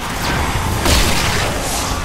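A rifle shot cracks loudly.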